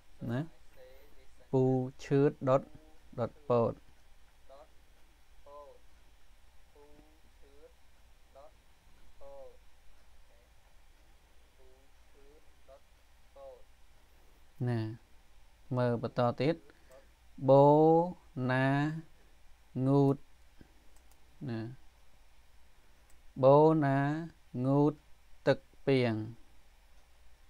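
A man speaks slowly and clearly into a microphone, as if teaching, with long pauses.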